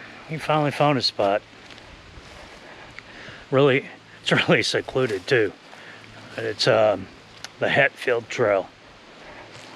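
A middle-aged man talks calmly close to a microphone, outdoors.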